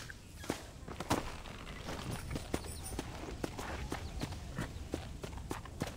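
A horse's hooves thud on dry ground at a trot.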